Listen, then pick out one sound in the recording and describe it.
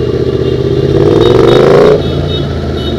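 A motorcycle engine revs up sharply and then drops off.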